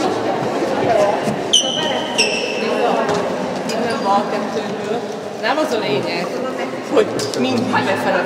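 A woman talks with animation to a group of girls.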